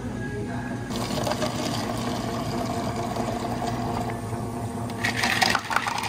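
Water pours into a plastic cup.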